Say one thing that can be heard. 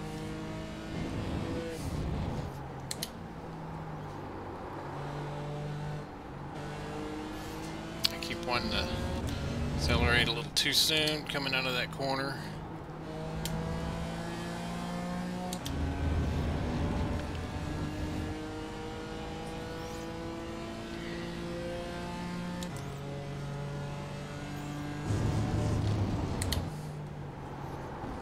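A racing car engine revs high and climbs in pitch through each gear, dropping sharply at each gear change.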